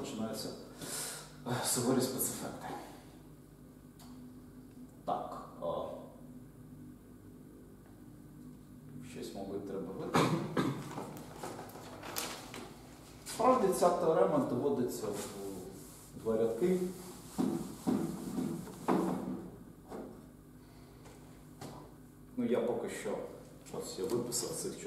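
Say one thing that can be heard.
A man speaks calmly and explains in a lecture, with pauses.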